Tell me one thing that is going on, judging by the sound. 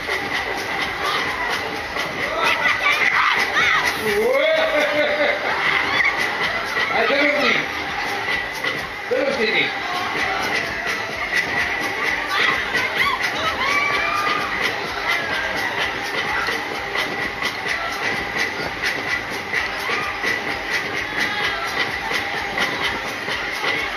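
A fairground ride whirls round and round with a steady rumble.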